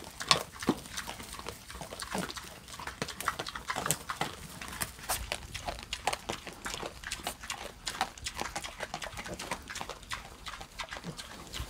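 Piglets squeal and grunt close by.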